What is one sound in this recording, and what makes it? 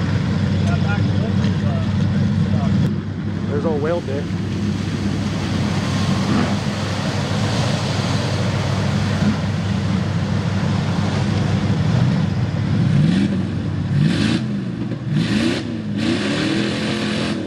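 A truck engine roars and revs loudly.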